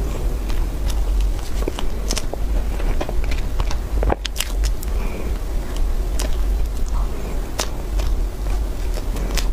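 A fork scrapes and taps against a plate.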